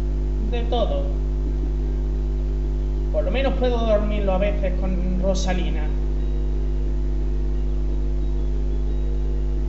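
A low, steady electronic drone plays throughout.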